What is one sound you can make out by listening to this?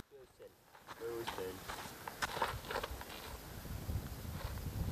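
A woman speaks nearby, outdoors.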